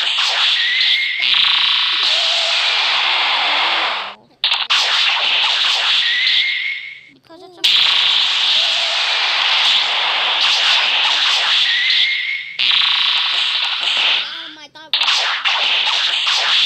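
Fighting sound effects roar with a whooshing, crackling rush.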